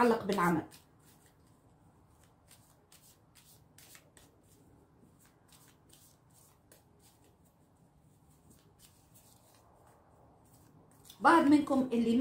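Playing cards shuffle with soft, quick riffling clicks.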